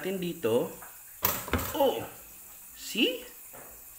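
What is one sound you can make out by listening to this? A toaster lever is pushed down with a click.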